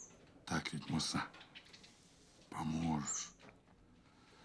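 A middle-aged man speaks close up in a low, menacing voice.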